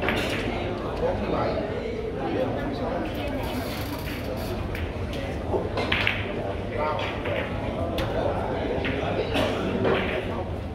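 A crowd of people murmurs and chatters in the background.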